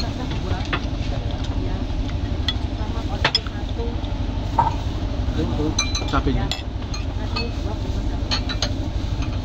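Metal cutlery clinks against a bowl.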